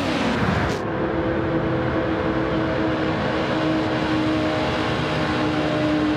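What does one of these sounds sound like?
A sports car engine roars at high revs as the car speeds past.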